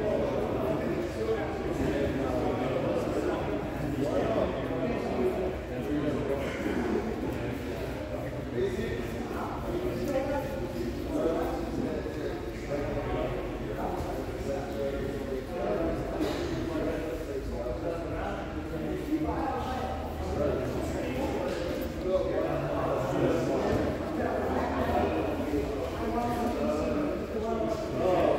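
Several men and women talk at once in a large echoing hall.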